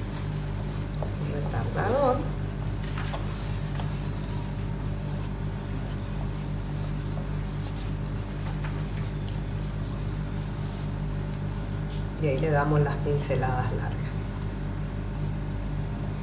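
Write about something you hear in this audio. A brush strokes softly across canvas.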